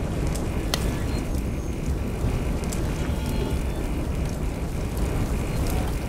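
A flamethrower roars with a rushing blast of fire.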